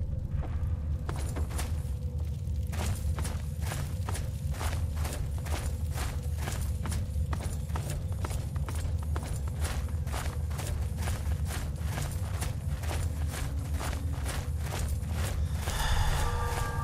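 Footsteps crunch steadily on rocky ground.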